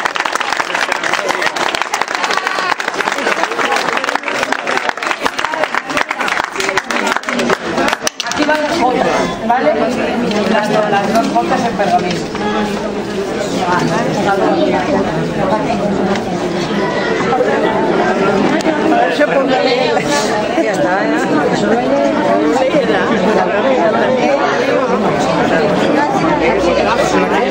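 Men and women chatter and talk excitedly nearby.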